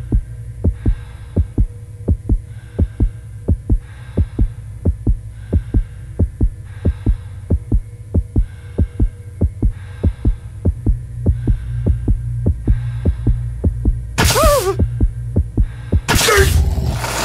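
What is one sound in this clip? A clock ticks steadily and quickly.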